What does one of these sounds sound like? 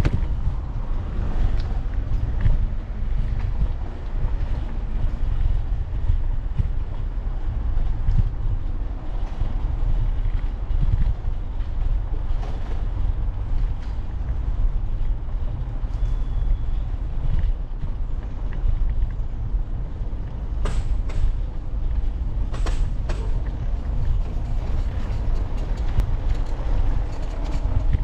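Bicycle tyres rumble over a brick street.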